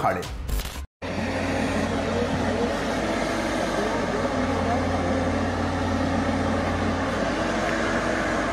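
A digger's engine rumbles steadily nearby.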